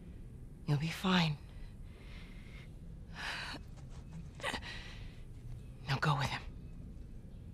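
A woman speaks quietly and calmly.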